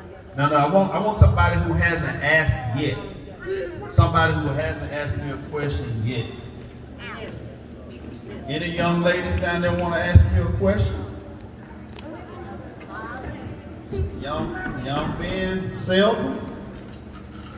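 A man speaks with animation through a microphone and loudspeakers in a large echoing hall.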